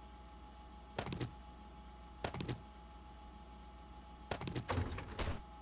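Items are moved about with short rustling clicks in bursts.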